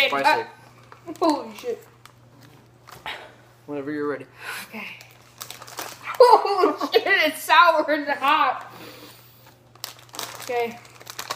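A snack bag crinkles.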